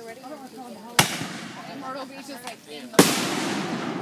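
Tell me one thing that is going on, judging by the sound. Fireworks burst with loud bangs.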